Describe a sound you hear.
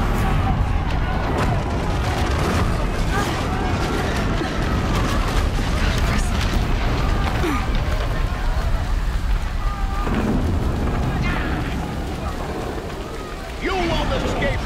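Footsteps crunch on the ground.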